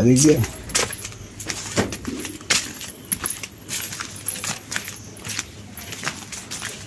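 Footsteps walk slowly on a dirt path outdoors.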